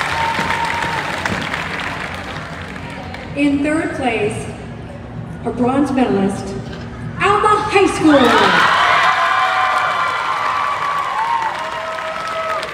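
A large crowd cheers and screams.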